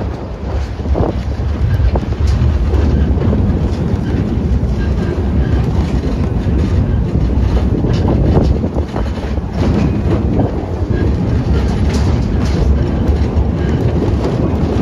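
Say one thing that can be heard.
A small train rumbles and rattles steadily along the track.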